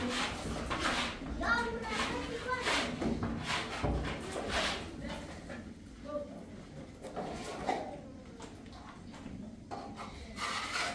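A child's hands scoop and slap wet plaster in a basin.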